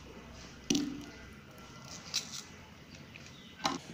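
Fingers peel papery onion skin.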